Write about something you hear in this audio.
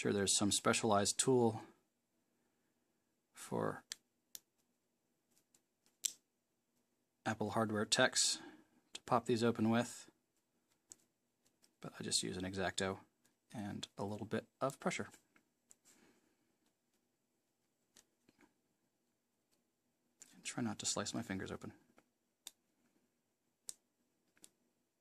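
A hobby knife scrapes and clicks against a small plastic part.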